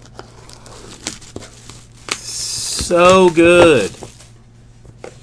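Plastic wrap crinkles and tears as hands pull it off a box.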